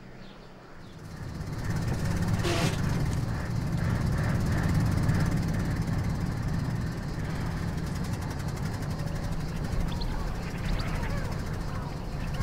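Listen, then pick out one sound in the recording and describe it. An old car engine rumbles loudly from up close.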